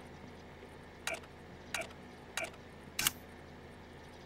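Short menu clicks sound a few times in quick succession.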